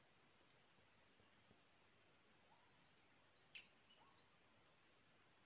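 Small birds chirp rapidly high in a tree.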